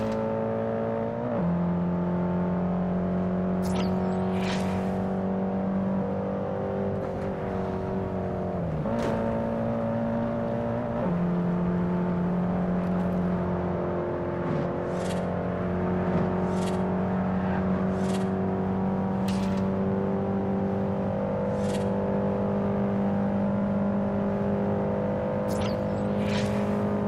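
A car engine hums steadily at high speed, shifting gears now and then.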